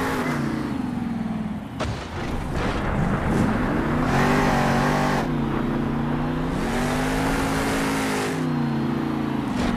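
A monster truck engine roars and revs up and down.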